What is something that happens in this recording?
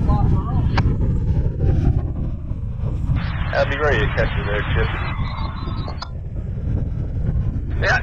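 Strong wind buffets and rumbles outdoors.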